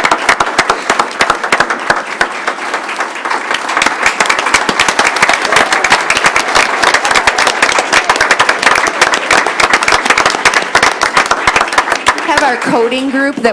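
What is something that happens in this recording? A group of people applaud in a room.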